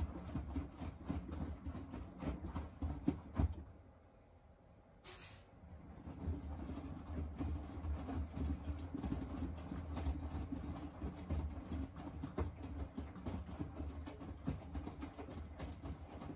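A washing machine drum turns, sloshing and thumping laundry.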